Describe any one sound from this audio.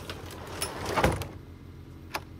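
A garage door slams shut with a heavy thud.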